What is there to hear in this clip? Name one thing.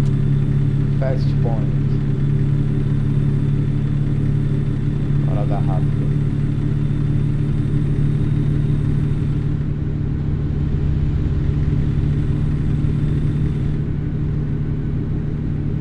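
A truck engine hums low and steady.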